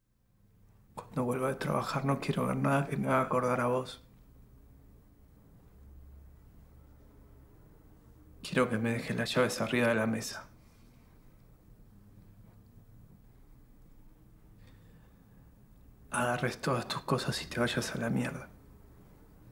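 A young man speaks quietly and close by, in short bursts.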